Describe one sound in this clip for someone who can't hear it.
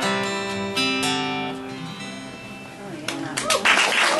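An acoustic guitar rings out a final chord and fades.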